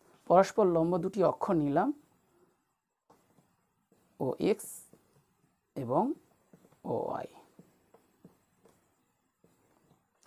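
A pencil scratches along a ruler on paper.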